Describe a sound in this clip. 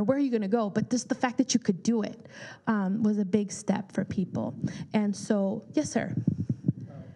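A woman speaks clearly into a microphone with animation.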